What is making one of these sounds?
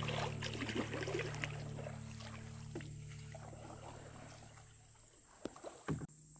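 Kayak paddles splash softly in calm water.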